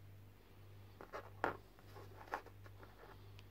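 A plastic figure taps onto a table.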